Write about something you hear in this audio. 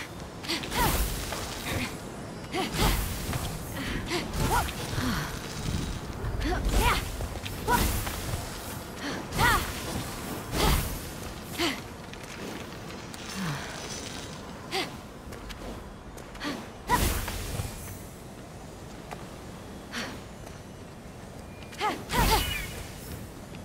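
Magical whooshing bursts sound now and then.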